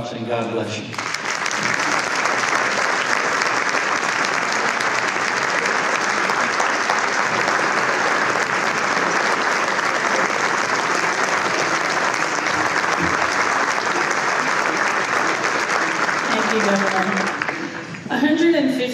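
A large crowd applauds loudly in a large hall.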